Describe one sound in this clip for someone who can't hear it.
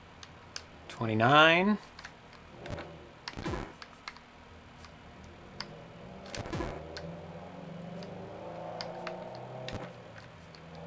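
Electronic game sound effects beep and chirp.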